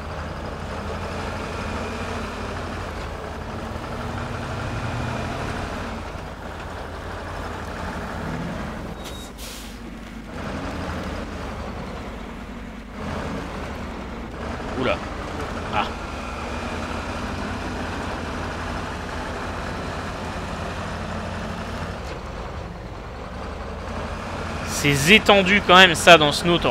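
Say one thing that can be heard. A truck engine rumbles steadily as it drives over rough ground.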